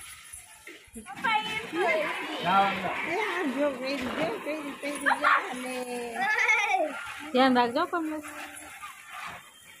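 A young woman and others talk with animation nearby.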